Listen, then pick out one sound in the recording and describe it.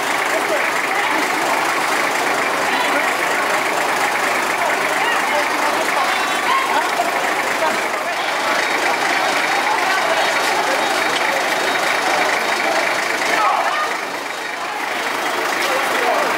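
A crowd of men chatter nearby outdoors.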